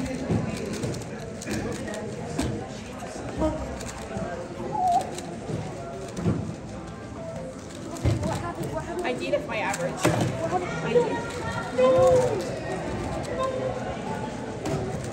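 A puzzle cube clicks and rattles as it is turned quickly.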